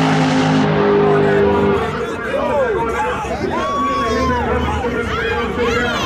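A race car engine roars loudly as the car launches and speeds away.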